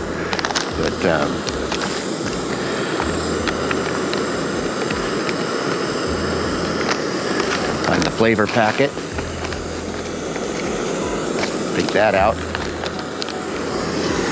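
Plastic packaging crinkles and rustles.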